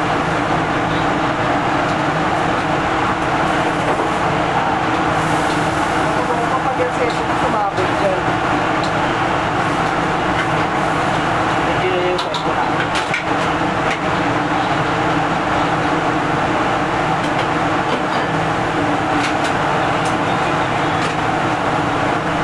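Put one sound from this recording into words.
A gas burner roars steadily under a wok.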